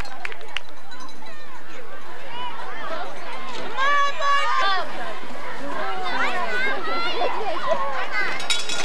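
Young players and spectators shout and cheer outdoors at a distance.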